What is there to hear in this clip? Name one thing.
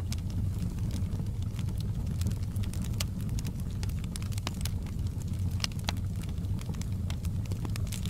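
Flames roar with a low steady rumble.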